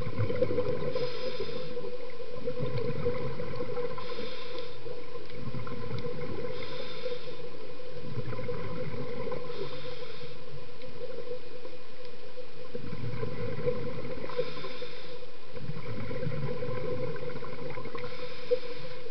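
Exhaled air bubbles gurgle and rumble in regular bursts underwater.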